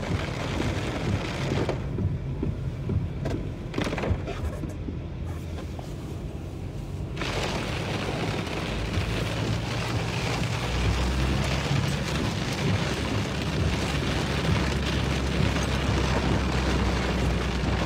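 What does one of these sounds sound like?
Heavy rain beats on a car's windscreen.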